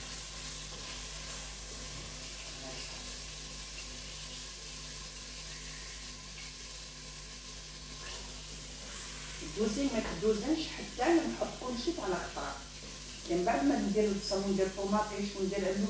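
Meat sizzles softly in a hot pot.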